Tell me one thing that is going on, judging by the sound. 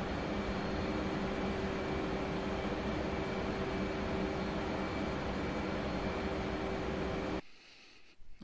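A jet engine hums steadily, heard from inside the cockpit.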